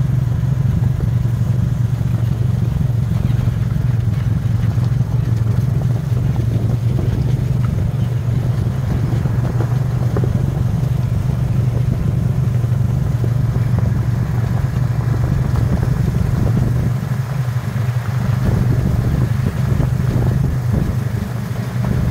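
Tyres crunch over a gravel dirt road.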